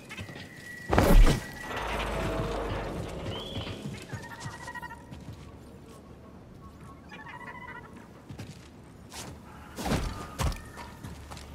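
A heavy thud sounds as a person lands from a jump.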